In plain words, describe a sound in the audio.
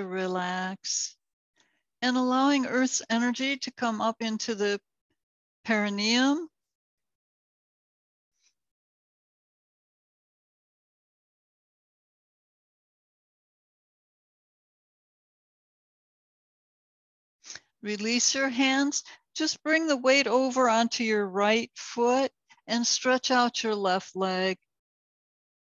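A woman speaks calmly and slowly, close by.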